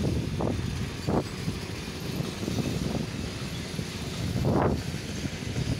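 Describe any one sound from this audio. A standing passenger train hums with a low, steady rumble.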